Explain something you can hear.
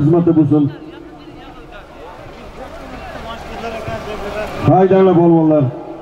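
A large crowd of men shouts and chatters outdoors.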